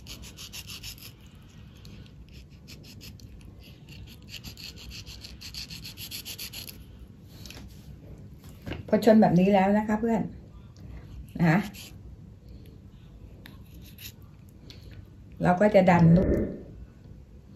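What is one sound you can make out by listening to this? A small knife scrapes the skin off a soft fruit.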